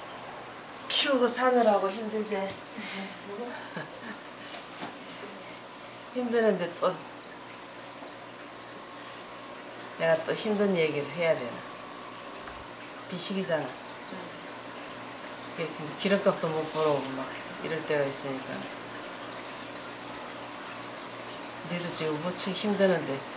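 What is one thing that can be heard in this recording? An elderly woman speaks calmly and close by, in short bursts with pauses.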